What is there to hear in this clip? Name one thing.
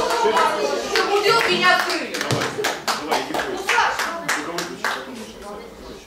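Hands clap in an echoing hall.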